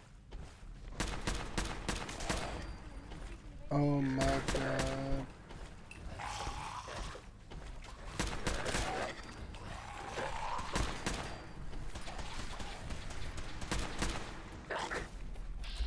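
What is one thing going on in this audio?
A video game gun fires.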